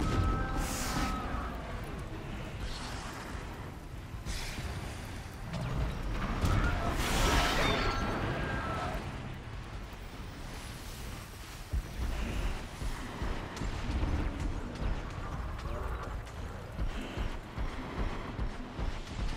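Mechanical flying creatures whir and screech overhead.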